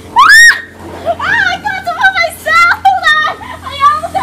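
Teenage girls shriek and laugh with excitement nearby.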